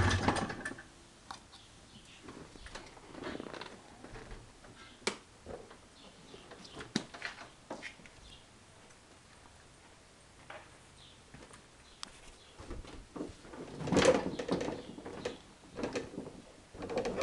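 Plastic panels knock and rattle as they are handled.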